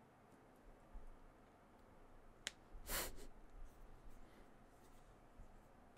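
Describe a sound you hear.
A man speaks quietly into a close microphone.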